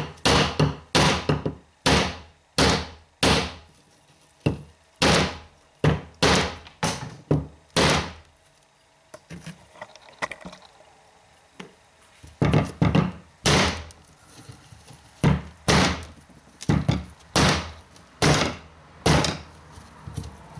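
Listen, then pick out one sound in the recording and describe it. A hammer knocks repeatedly on a hard coconut shell.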